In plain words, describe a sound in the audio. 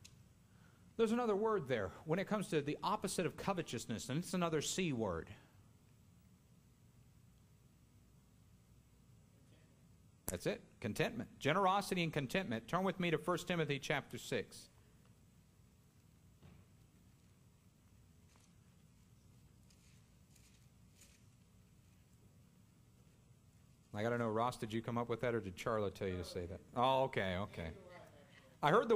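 A man speaks calmly into a microphone in a large echoing room, with long pauses.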